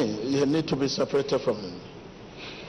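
A man speaks loudly into a microphone over loudspeakers in a large echoing hall.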